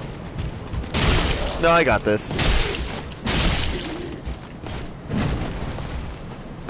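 Swords swing and strike with heavy thuds.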